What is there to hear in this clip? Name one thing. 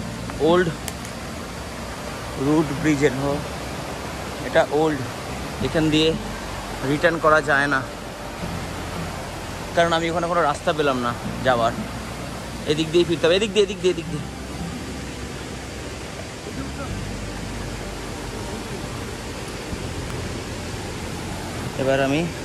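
A stream trickles over rocks.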